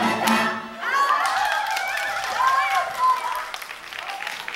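Women laugh and cheer loudly.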